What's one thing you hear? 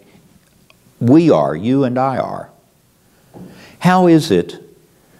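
An elderly man speaks with animation into a clip-on microphone.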